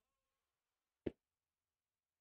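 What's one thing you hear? A tennis player strikes a serve with a sharp pop.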